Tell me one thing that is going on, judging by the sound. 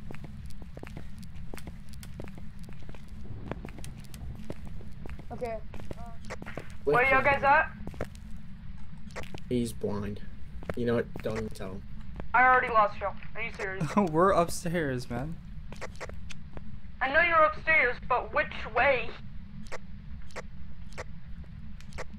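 A handheld detector crackles with quick, irregular clicks.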